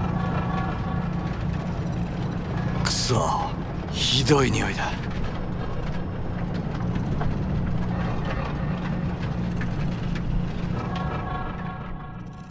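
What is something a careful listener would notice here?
Rain patters on a car's windshield and roof.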